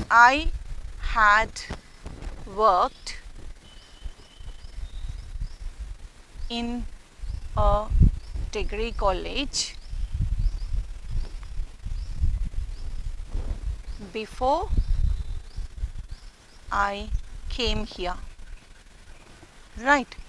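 A woman speaks calmly and clearly, as if teaching.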